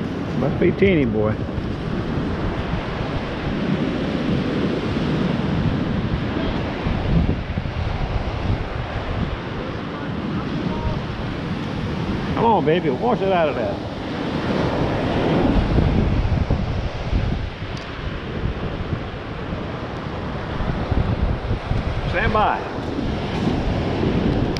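Waves wash up over sand close by.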